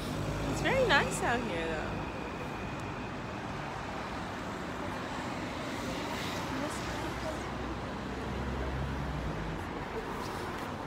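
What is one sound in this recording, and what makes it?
City traffic rumbles in the distance.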